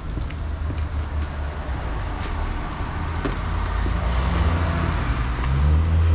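Footsteps crunch on packed snow.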